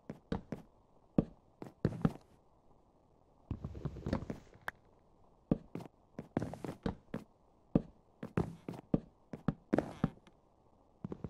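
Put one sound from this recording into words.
Wooden blocks knock into place one after another.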